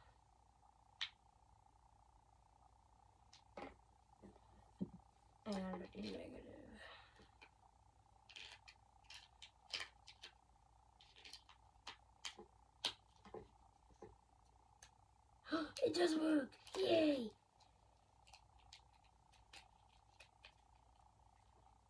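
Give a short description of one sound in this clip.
Small pieces click and tap in a boy's hands.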